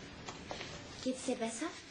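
A young woman speaks briskly.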